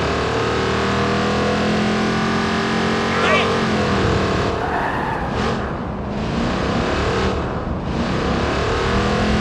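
A car engine roars steadily as the car speeds along.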